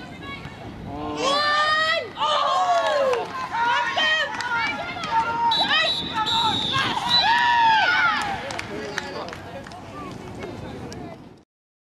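Young women shout and call out to each other across an open outdoor pitch.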